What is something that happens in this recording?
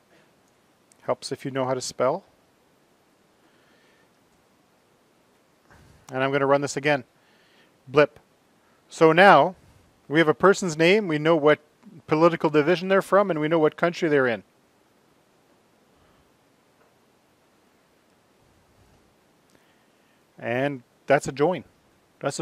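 A man speaks calmly into a microphone, explaining in short phrases.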